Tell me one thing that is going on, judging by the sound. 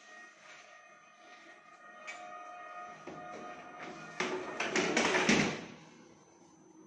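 A wire dishwasher rack rattles as it slides on its rails.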